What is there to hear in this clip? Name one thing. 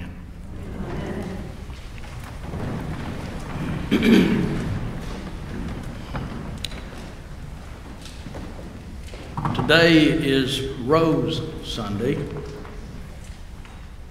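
An elderly man speaks calmly into a microphone in a room with a slight echo.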